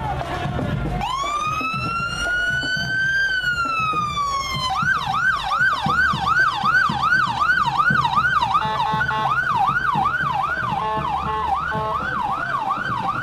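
A police siren wails close by, first rising and falling slowly, then yelping quickly.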